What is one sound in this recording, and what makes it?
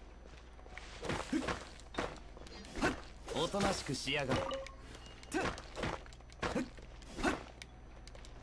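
A sword swings and slashes with sharp whooshing strikes.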